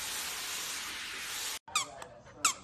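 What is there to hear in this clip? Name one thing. Water sprays from a shower head onto a dog.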